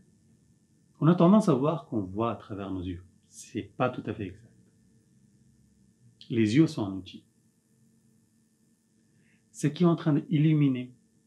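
A middle-aged man speaks calmly and thoughtfully nearby, with pauses.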